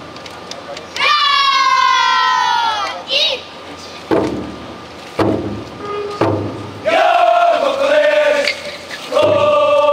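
A group of men chant and shout loudly in long calls.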